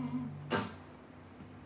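An acoustic guitar chord rings and is suddenly muted.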